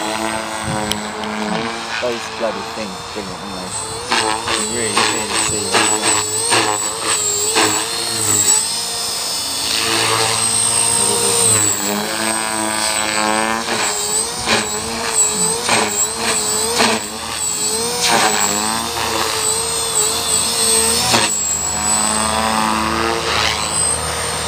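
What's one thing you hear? A model helicopter's engine whines overhead, its pitch rising and falling as it flies.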